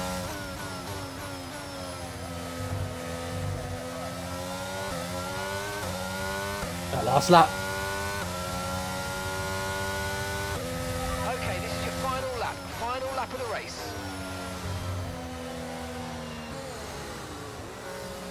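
A racing car engine whines high and shifts pitch as it speeds up and slows down.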